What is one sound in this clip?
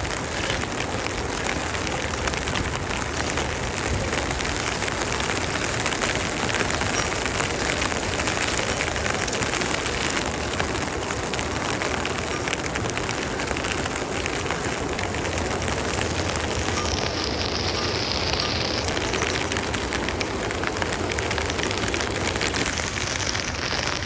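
Steady rain patters all around outdoors.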